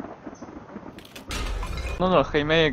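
Glass cracks and shatters.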